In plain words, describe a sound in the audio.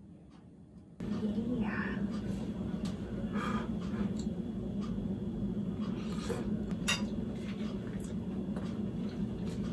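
A young woman talks and murmurs softly close by.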